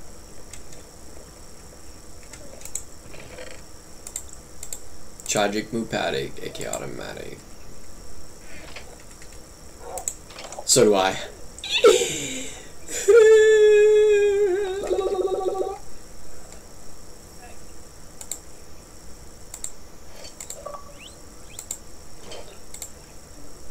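A computer mouse clicks repeatedly.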